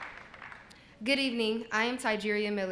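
A young woman speaks through a microphone in a large hall.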